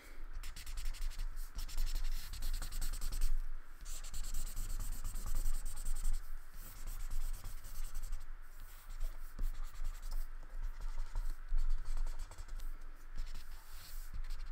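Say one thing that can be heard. A crayon rubs and scrapes across paper.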